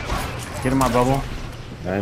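Gunshots fire in quick bursts close by.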